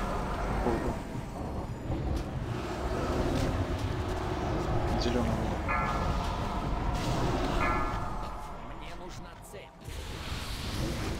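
Spell effects crackle and whoosh during a fantasy battle.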